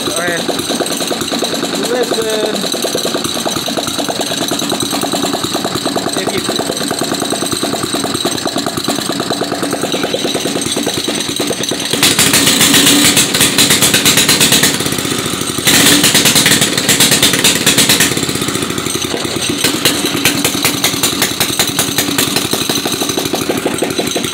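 A small engine runs with a rapid, steady putter, close by.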